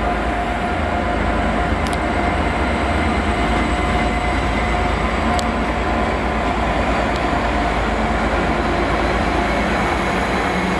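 A passenger train rumbles past close by on the rails.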